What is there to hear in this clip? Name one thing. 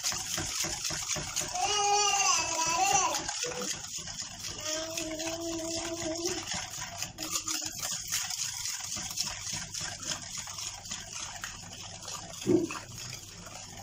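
Thick cake batter is whisked by hand in a plastic bowl.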